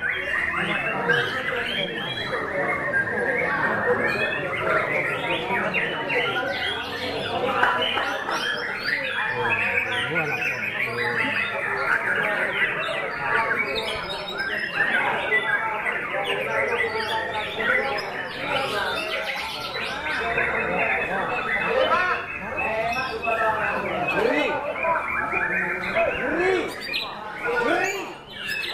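Many other birds chirp and sing all around.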